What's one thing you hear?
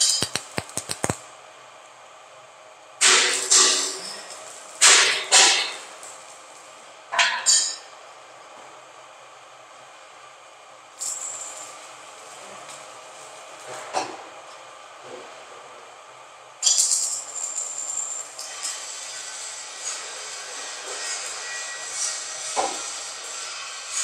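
Sheet steel clanks and rattles as it is handled on a concrete mixer drum.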